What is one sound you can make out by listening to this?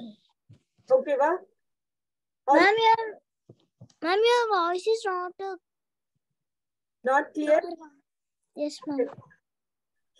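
A young boy speaks with animation over an online call, in short bursts.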